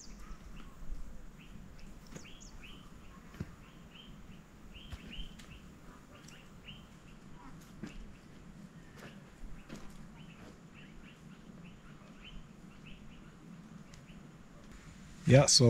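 A hoe scrapes and knocks into dry soil.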